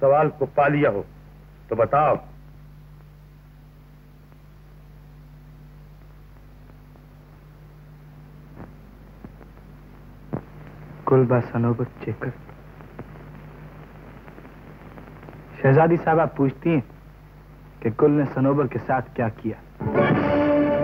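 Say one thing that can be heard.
A young man speaks in short, earnest phrases.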